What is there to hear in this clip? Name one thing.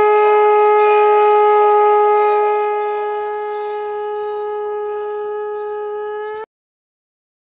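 A conch shell blows one long, steady, loud note that fades a little and then stops abruptly.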